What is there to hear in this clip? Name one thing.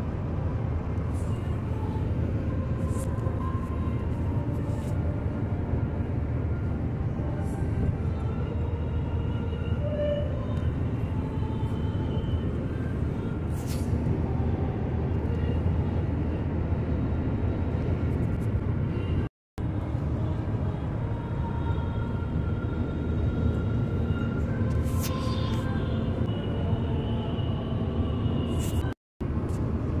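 A car drives along a highway with a steady low road rumble inside the cabin.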